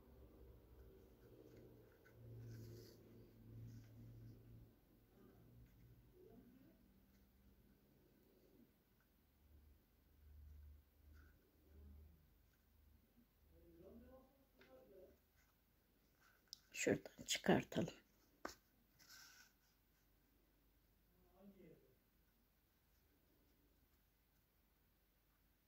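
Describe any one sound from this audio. Thread rasps softly as it is pulled through knitted fabric.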